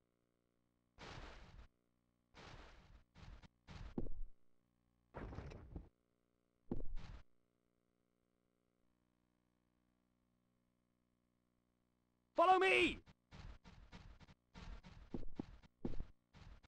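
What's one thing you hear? Footsteps fall on a stone pavement.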